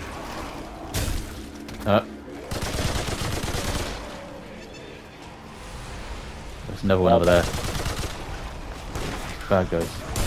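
A gun fires in loud bursts of shots.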